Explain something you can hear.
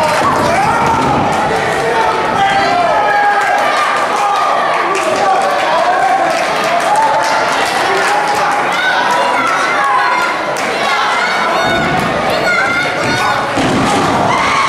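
A crowd chatters and shouts in a large echoing hall.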